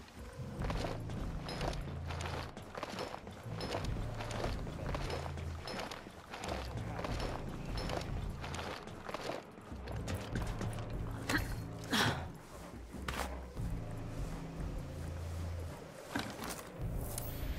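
Boots step softly on a hard deck.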